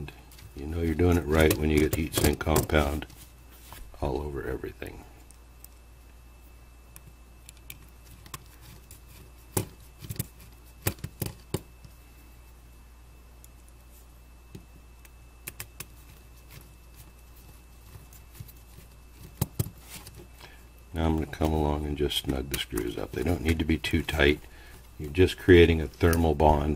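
A screwdriver clicks and scrapes against metal screws.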